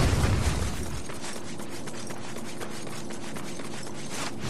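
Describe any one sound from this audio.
Footsteps run quickly on metal rails.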